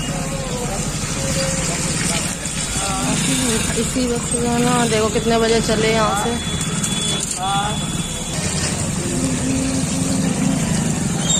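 A motorcycle engine rumbles close by.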